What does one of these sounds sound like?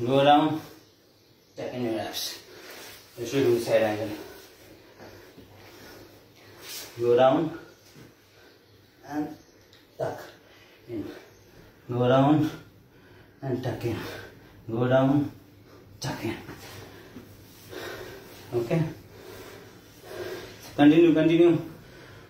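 A man speaks calmly and clearly in short bursts, close by.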